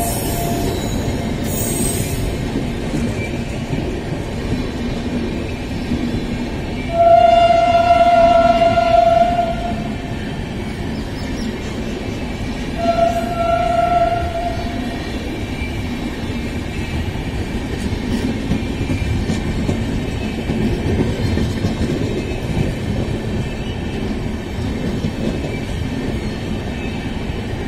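A passenger train rumbles steadily past close by.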